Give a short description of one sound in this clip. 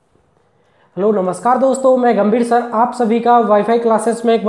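A young man speaks clearly and with animation, close to a microphone.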